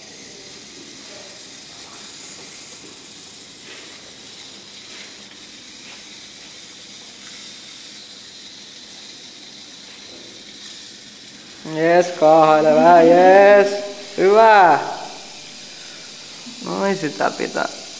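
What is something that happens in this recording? Small electric motors whir softly as a little wheeled robot rolls across a hard floor.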